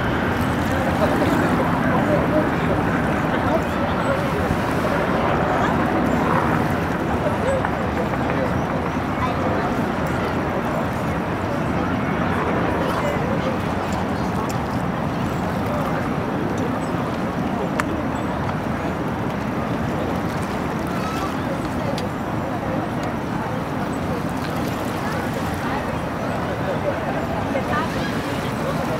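Water splashes and rushes against a moving boat's hull.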